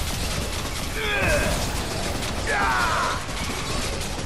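A monster lets out a shrill, wavering screech.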